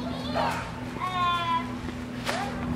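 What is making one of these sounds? A young girl calls out in a high voice.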